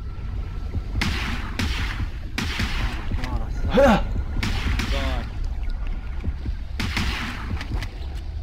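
A pistol fires underwater with muffled, hissing bursts.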